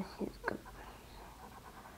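A felt-tip marker squeaks softly across paper.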